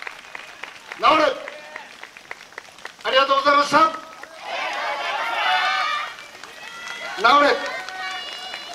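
A group of young dancers shouts rhythmic calls in unison.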